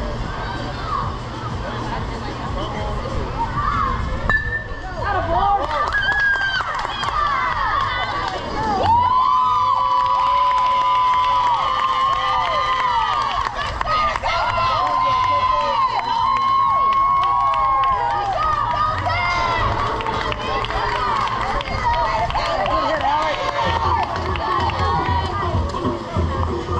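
Young players shout and cheer outdoors at a distance.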